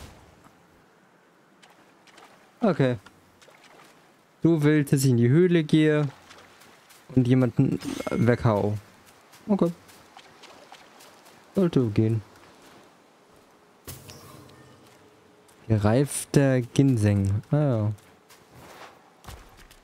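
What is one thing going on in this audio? Footsteps crunch on dry grass and gravel.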